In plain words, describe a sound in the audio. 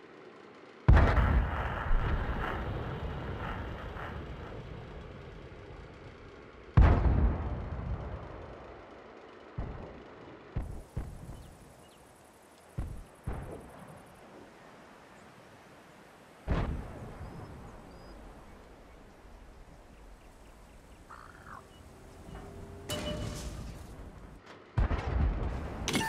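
A tank cannon fires with a loud, booming blast that rolls away.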